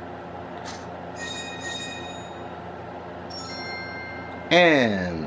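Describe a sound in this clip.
A bright electronic chime rings as coins are collected.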